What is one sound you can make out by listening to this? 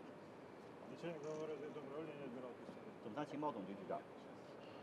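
Another man answers in greeting, close by.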